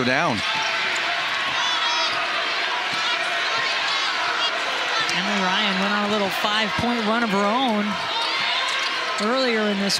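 A large indoor crowd murmurs and cheers in an echoing arena.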